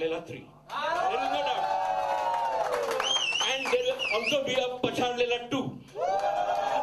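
An older man sings loudly through a microphone.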